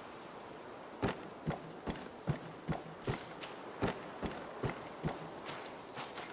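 Footsteps thud on wooden boards at a steady pace.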